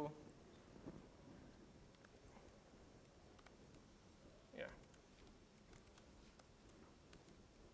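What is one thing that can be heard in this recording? A laptop keyboard clicks as a man types.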